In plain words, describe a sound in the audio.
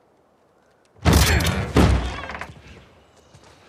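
A door bursts open with a loud bang.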